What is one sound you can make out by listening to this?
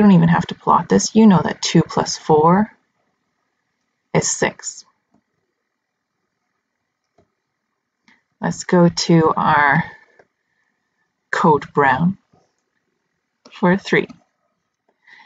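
A young woman speaks calmly into a close microphone, explaining with pauses.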